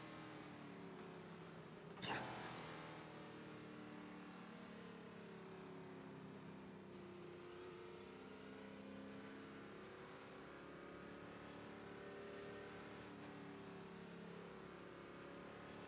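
A race car engine hums steadily at low speed.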